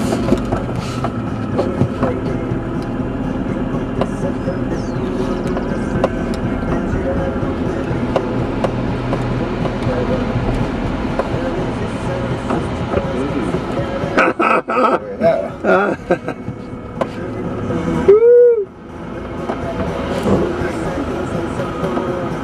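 A car body rattles and bumps over uneven ground.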